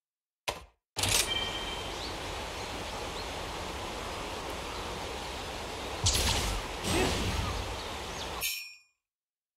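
Wind rustles through tall grass outdoors.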